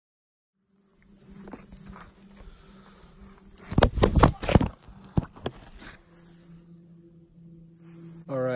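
A man speaks calmly and close up outdoors.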